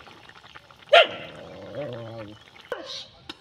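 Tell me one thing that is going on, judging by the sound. A thick sauce bubbles and sizzles in a pan.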